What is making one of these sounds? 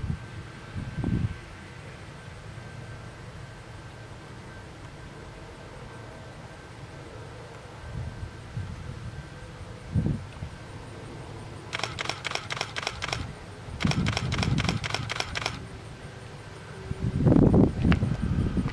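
A harvester engine hums steadily in the distance.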